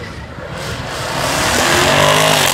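A car engine revs up as it drives past close by.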